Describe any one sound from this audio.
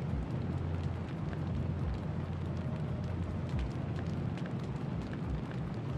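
Fire roars low and steadily on a burning warship.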